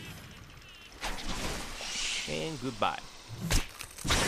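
Sharp impacts hit a large creature.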